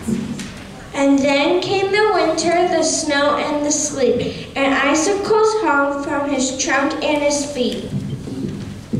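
Children sing together through a microphone in a large echoing hall.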